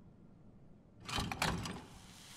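A heavy mechanism clunks into place with a loud rumble.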